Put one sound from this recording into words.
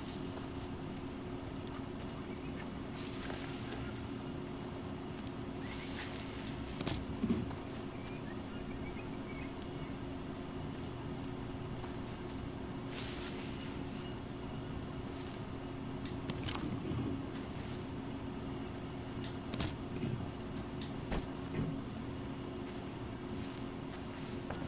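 Footsteps rustle through dense leafy plants.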